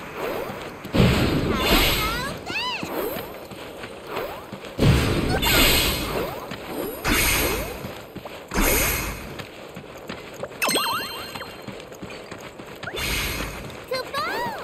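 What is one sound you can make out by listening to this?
Magical bursts explode with a sparkling whoosh.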